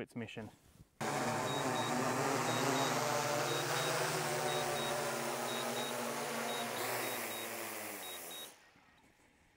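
A drone's propellers whine and buzz steadily, then wind down.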